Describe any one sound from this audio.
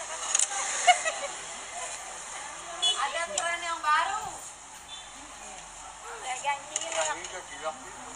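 A metal ladle clinks against a steel pot.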